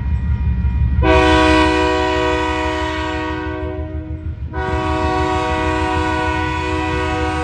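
A train horn blows loudly in two long blasts.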